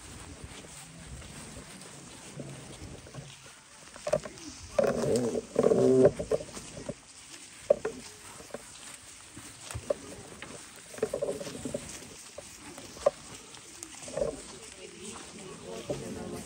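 Footsteps rustle through dry leaves.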